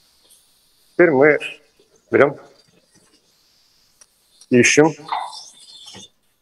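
A man speaks in short phrases through a microphone.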